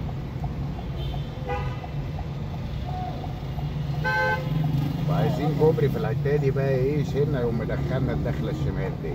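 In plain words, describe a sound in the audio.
A car engine hums steadily while driving along a street.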